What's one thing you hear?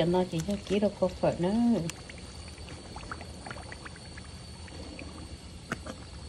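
A wooden spatula scrapes and stirs in a pan.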